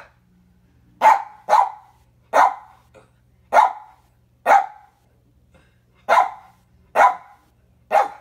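A small dog barks in sharp single barks.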